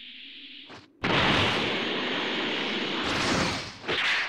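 A fighter rushes through the air with a loud whoosh.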